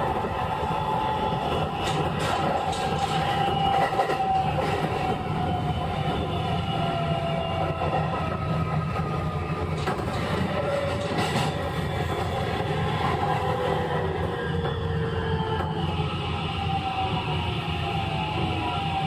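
An electric train rumbles along the tracks.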